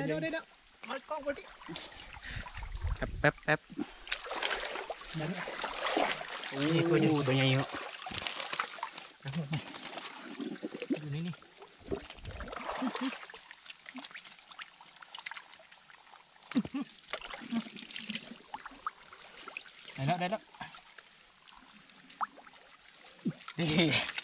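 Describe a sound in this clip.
Water splashes and sloshes as hands dig in a shallow muddy stream.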